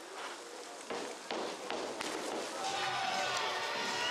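A diver splashes into the water.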